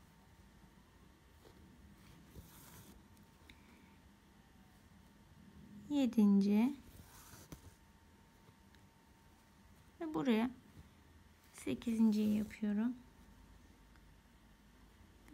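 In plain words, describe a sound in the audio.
Thread is pulled softly through cloth with a faint rustle.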